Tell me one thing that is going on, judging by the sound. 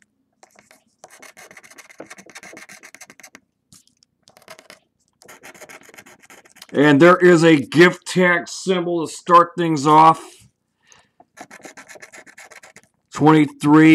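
A coin scratches rapidly across a card in short bursts.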